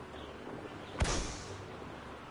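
A balloon bursts with a sharp pop.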